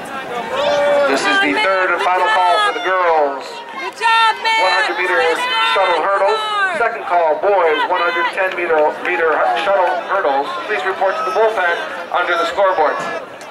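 Young women close by cheer and shout loudly.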